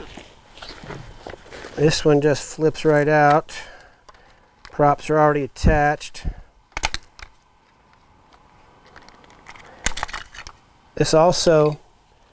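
Hard plastic parts click and snap together up close.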